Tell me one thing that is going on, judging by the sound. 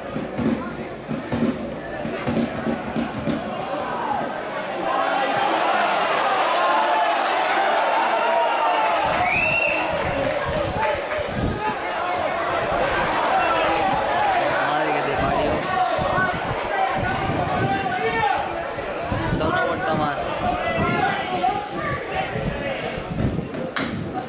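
A crowd of spectators chatters and murmurs outdoors in an open stadium.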